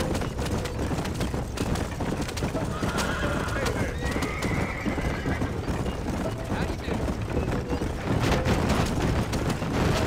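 A wooden wagon rattles and creaks over a rough dirt track.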